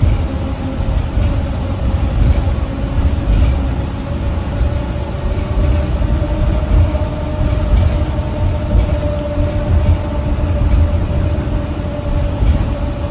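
A bus engine hums steadily while the bus drives along.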